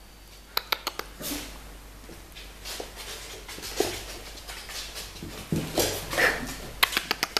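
A puppy's paws rustle on a soft blanket.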